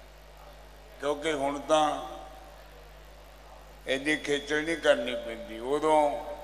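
An elderly man sings in a slow, drawn-out voice into a microphone.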